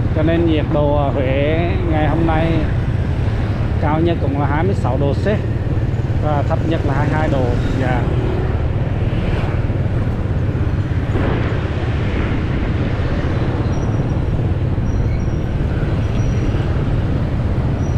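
Motorbike engines rumble steadily nearby.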